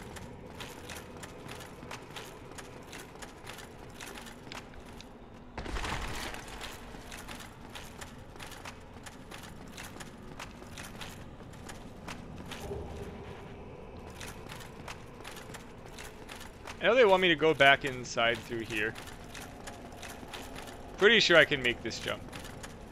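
Footsteps clank rhythmically on stone.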